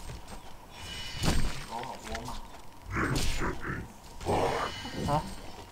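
Game spells burst and crackle in a fight.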